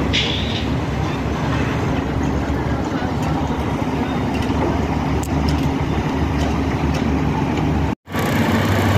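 A diesel concrete pump truck's engine runs.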